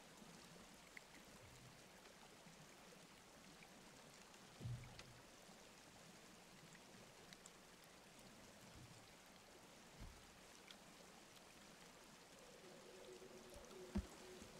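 Footsteps thud softly on wooden boards.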